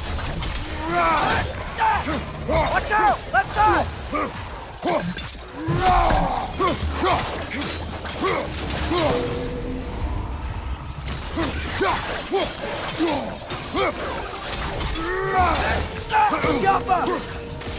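Fire whooshes and roars in bursts.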